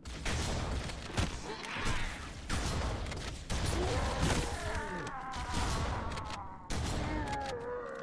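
Gunfire and explosions boom loudly in a video game.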